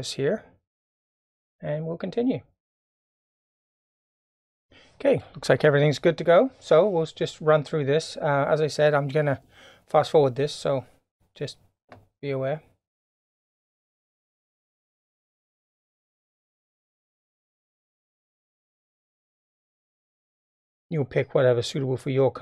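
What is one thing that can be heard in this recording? A middle-aged man talks calmly into a close microphone, with pauses.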